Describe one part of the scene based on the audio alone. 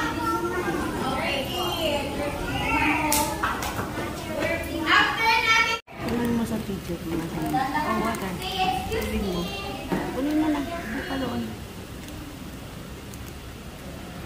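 Young children chatter nearby.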